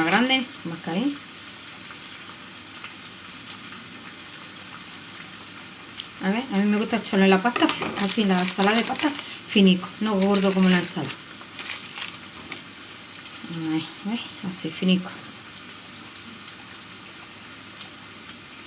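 Scissors snip through soft food.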